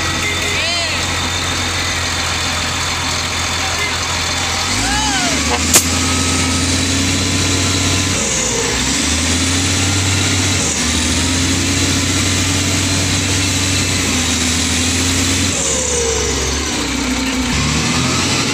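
A truck engine labours and revs.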